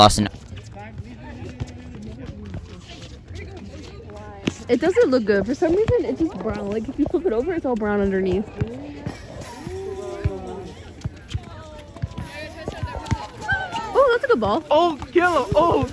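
A ball is kicked with dull thuds.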